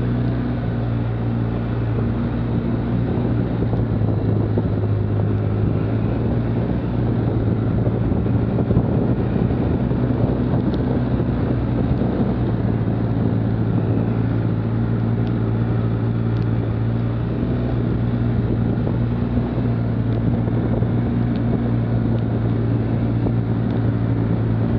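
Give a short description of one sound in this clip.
A quad bike engine hums steadily up close.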